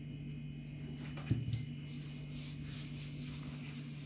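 Gloved hands rustle and press dry shredded pastry.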